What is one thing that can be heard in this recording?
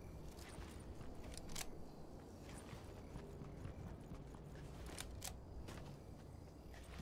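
Footsteps patter quickly on grass and dirt as a game character runs.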